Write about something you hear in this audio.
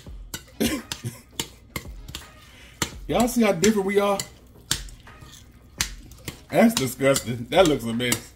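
Fingers squish and mash soft food on a plate.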